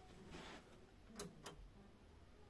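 A computer's power button clicks when pressed.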